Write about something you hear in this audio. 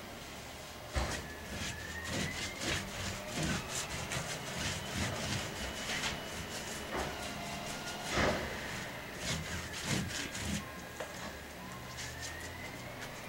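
A brush scrubs and dabs paint onto a canvas.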